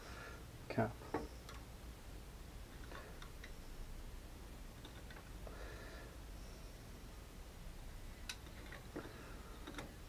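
Hard plastic parts click and knock as they are handled.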